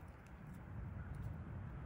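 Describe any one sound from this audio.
Pliers click against a metal leg band.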